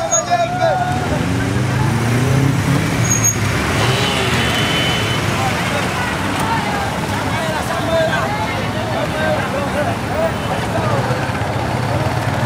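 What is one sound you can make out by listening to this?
A large crowd of men and women talks and shouts outdoors.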